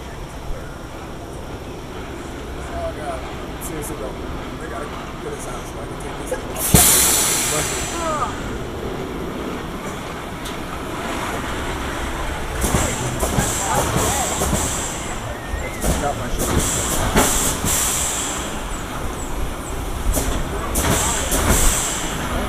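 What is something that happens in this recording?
A roller coaster train rumbles and clatters along its track.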